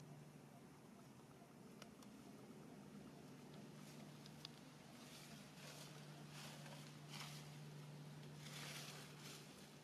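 A plastic bottle crinkles and crackles.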